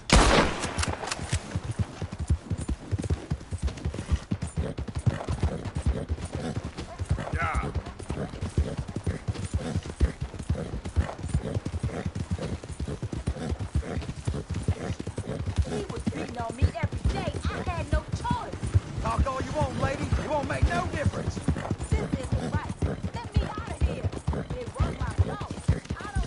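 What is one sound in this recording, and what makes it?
A horse gallops steadily, hooves thudding on the ground.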